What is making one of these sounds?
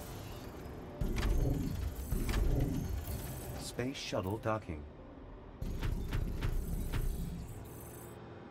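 Soft game sound effects thump as buildings are placed.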